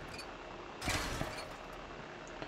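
A metal wrench strikes a wall with a crunching impact.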